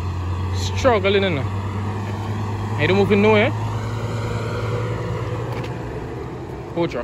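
A truck engine rumbles in the distance.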